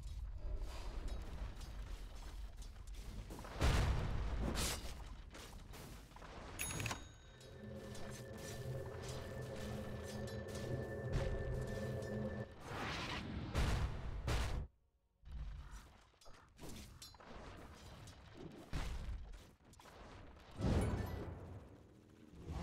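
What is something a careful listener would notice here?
Game combat effects clash and crackle.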